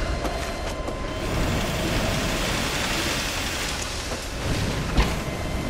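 A rope zip line whirs as someone slides down it.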